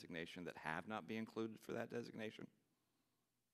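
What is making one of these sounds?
An older man speaks firmly into a microphone.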